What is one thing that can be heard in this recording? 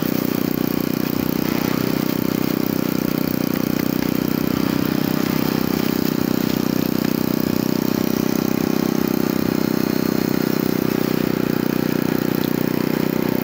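A juicer motor whirs steadily and loudly.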